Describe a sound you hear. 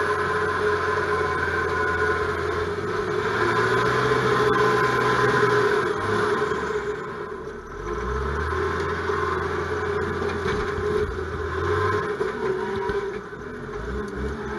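A heavy machine's diesel engine hums and whines steadily close by.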